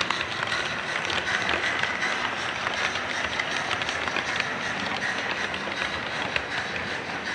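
Model train wheels click over rail joints.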